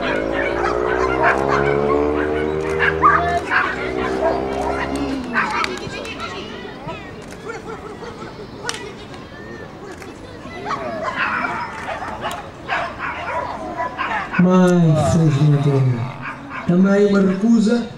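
A crowd chatters in the open air.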